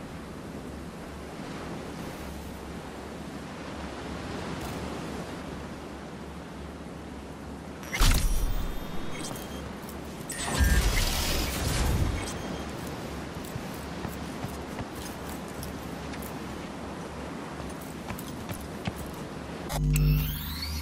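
Water laps gently against a pier.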